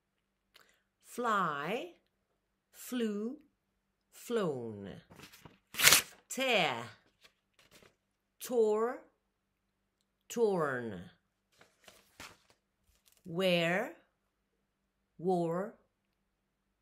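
An elderly woman speaks close to a microphone in short, clear phrases with pauses between them.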